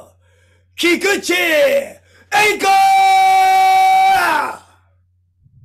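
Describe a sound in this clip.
A young man sings out loudly in long, drawn-out calls.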